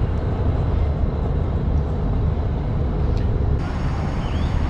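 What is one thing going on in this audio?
Water splashes and laps against a boat's hull.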